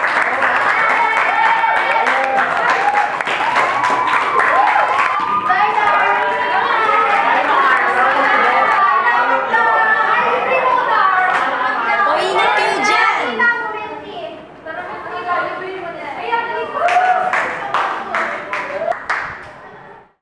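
Teenagers clap their hands.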